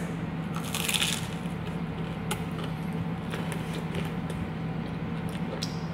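A young woman chews food with soft crunching.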